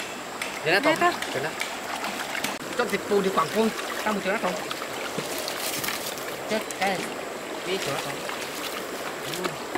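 Feet wade and splash through shallow water.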